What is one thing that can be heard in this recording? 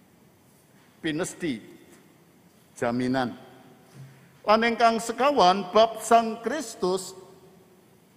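An elderly man speaks calmly in short phrases into a microphone.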